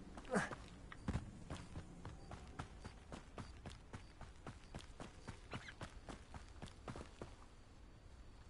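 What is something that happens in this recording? Footsteps tap steadily on a path.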